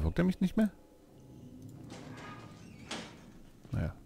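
A metal locker door bangs open.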